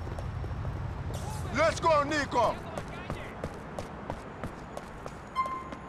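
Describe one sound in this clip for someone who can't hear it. Footsteps climb stone stairs.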